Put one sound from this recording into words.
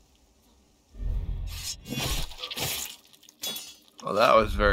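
A blade slashes and stabs with a wet thud.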